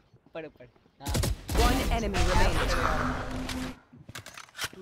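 A submachine gun fires a short burst.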